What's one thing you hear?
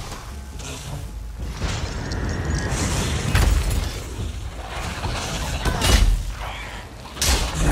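A blade swishes and strikes.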